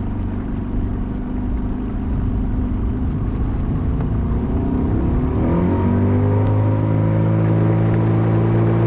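A boat's outboard motor hums steadily, then rises in pitch as the boat speeds up.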